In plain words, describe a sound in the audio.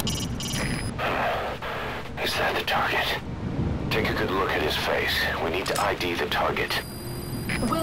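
A man speaks in a low, stern voice.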